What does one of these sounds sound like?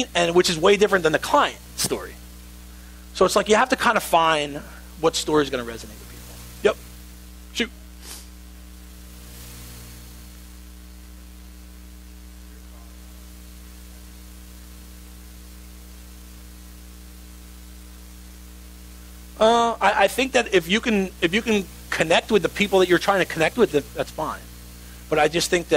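A man speaks with animation, with a long pause.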